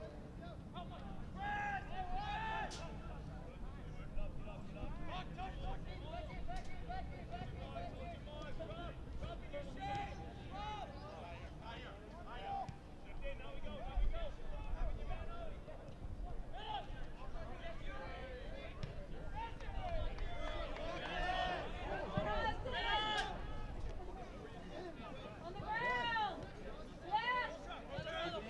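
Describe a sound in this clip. Young women shout and call to one another across an open field.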